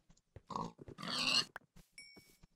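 A pig squeals as it is struck.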